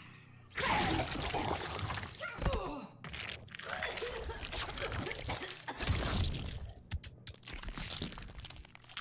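Wet squelching and crunching gore sounds play loudly.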